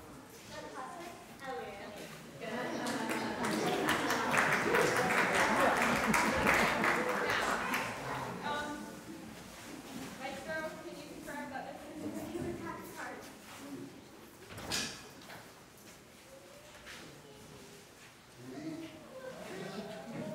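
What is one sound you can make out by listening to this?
Young girls speak and act out a scene in a hall.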